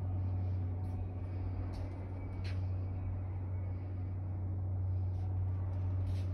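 Machinery on a corrugated cardboard production line hums steadily.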